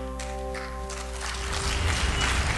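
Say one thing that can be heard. A violin plays a few held notes.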